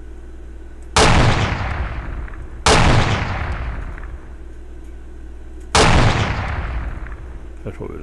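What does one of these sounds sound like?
A rifle fires loud, echoing shots one after another.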